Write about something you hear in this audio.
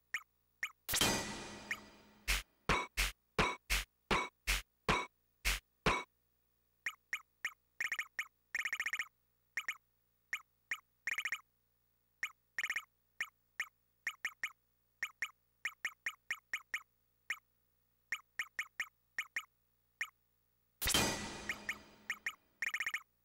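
A bright electronic chime rings out and fades.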